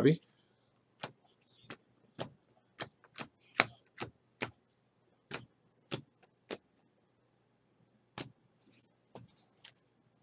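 Trading cards click and snap as they are flicked through by hand.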